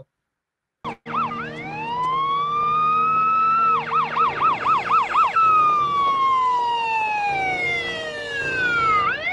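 A police siren wails, rising and falling, then yelps quickly before slowly winding down.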